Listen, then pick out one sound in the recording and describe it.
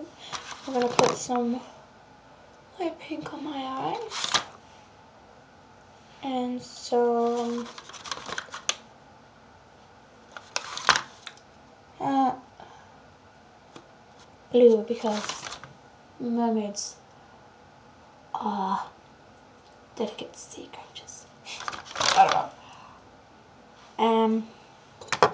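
A woman talks close to the microphone in short bursts.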